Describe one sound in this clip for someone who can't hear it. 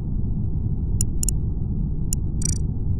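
A short electronic chime sounds as a chat message pops up in a game.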